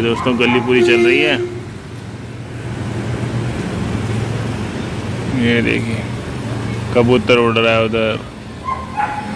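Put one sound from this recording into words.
A motor scooter engine hums as it rides past on the street below.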